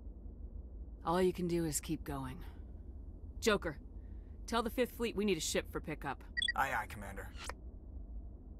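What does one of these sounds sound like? A woman speaks calmly and firmly.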